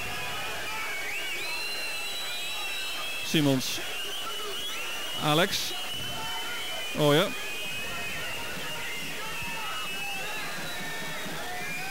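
A large stadium crowd chants and whistles steadily.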